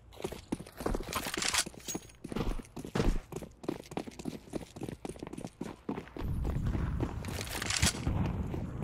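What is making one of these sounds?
Footsteps run quickly over gritty ground.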